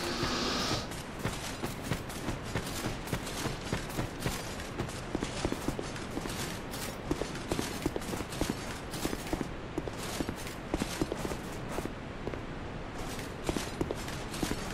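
Armoured footsteps run on stone.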